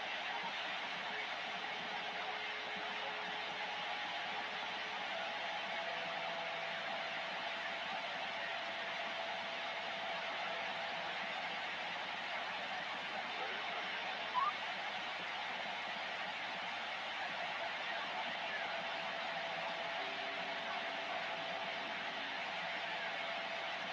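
Faint whistling tones drift through the static of a radio receiver.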